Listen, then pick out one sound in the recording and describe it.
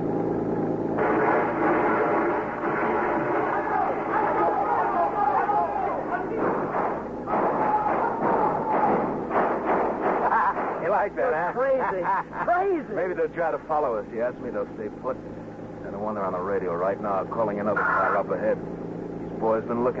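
A man reads out lines into a microphone.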